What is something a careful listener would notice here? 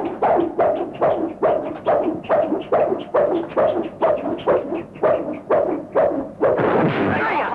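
Fists and blocks smack together in quick, rhythmic blows.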